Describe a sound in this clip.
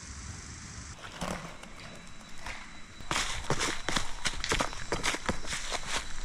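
Dry leaves crunch and rustle underfoot close by.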